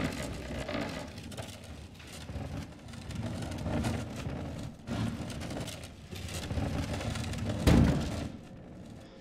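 A heavy wooden cabinet scrapes and grinds across a wooden floor.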